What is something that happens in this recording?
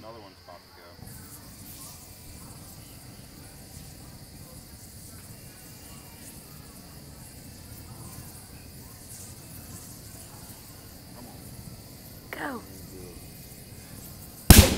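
A fire crackles and roars outdoors.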